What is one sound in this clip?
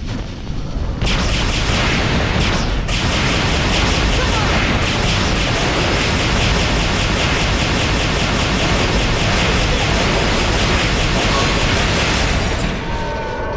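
A heavy gun fires in a long, rapid, loud burst.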